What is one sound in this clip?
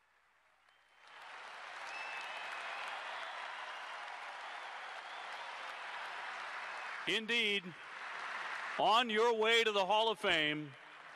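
A large stadium crowd murmurs and cheers outdoors.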